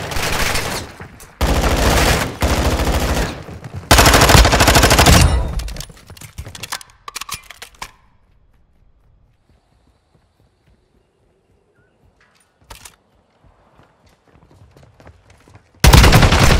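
Rapid gunfire rattles in loud, close bursts.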